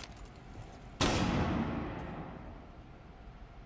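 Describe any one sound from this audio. A stun grenade bursts with a loud bang and a fading ringing.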